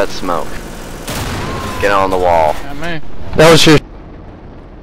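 An explosion booms loudly.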